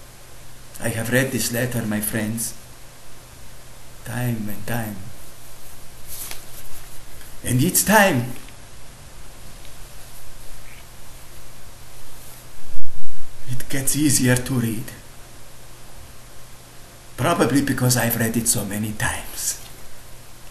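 A man reads out aloud in short bursts, close to the microphone.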